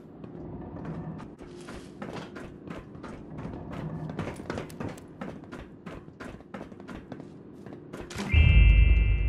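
Footsteps tread quickly over a hard floor.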